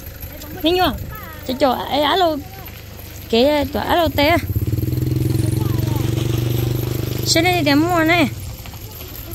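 A young woman calls out nearby in a high, sing-song voice.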